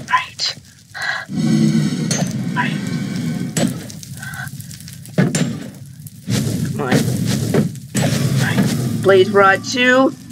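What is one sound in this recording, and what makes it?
Sword blows land with dull thuds on a creature.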